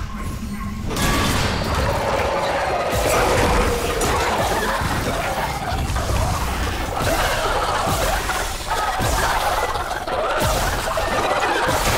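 A weapon fires in sharp, crackling bursts.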